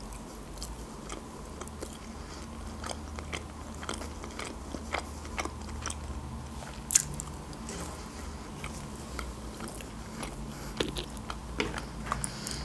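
A woman chews food with crisp, wet mouth sounds close to a microphone.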